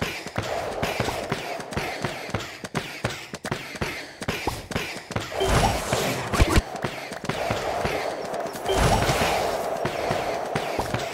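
Game sound effects pop and clash rapidly as pieces attack.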